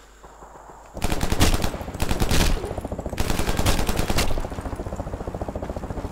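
A machine gun fires rapid bursts at close range.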